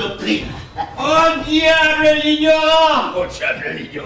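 A man sings out in a wavering, drawn-out voice.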